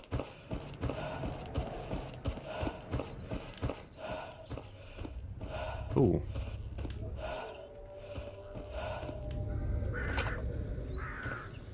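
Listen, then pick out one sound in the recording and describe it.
Footsteps crunch steadily through grass and brush.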